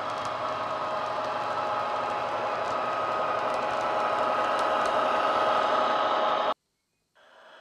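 A model train's diesel engine drones loudly as the train moves.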